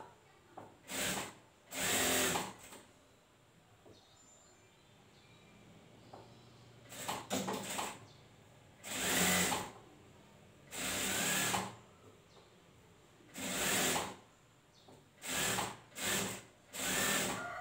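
A sewing machine runs in short bursts, starting and stopping.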